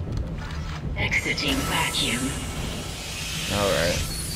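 Steam hisses loudly.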